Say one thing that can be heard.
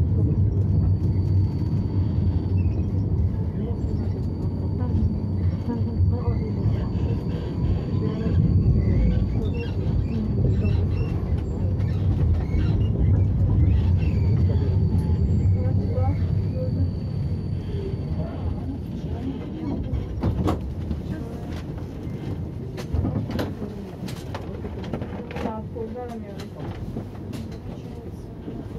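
A tram hums and rumbles low and steady as it rolls along, growing quieter near the end.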